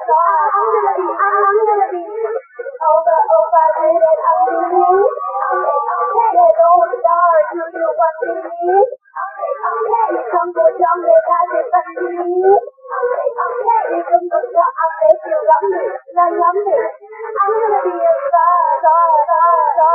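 Young women sing together through microphones.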